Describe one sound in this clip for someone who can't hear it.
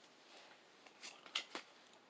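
A foil card pack crinkles as a hand handles it.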